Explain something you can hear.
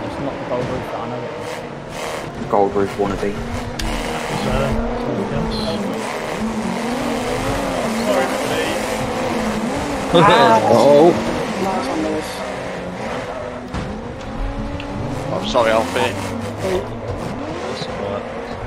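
Car engines rev and whine, rising and falling in pitch.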